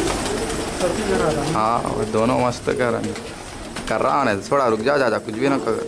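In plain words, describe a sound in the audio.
Pigeons' wings flap as a bird takes off.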